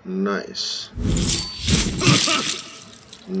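A bowstring twangs as an arrow flies and strikes.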